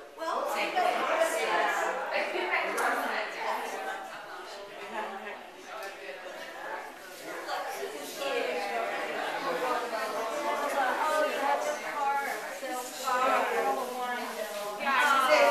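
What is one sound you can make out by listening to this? Several women chat close by.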